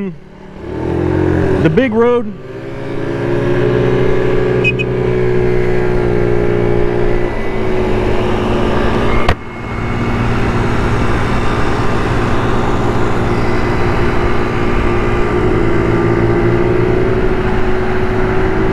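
Wind rushes past as the scooter rides.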